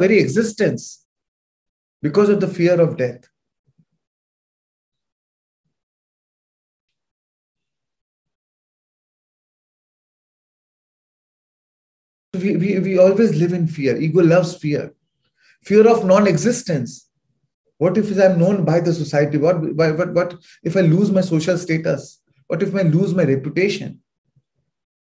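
A man speaks calmly into a microphone over an online call, pausing between phrases.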